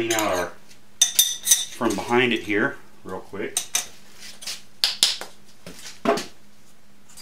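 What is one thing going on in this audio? Metal parts clink and tap as they are handled.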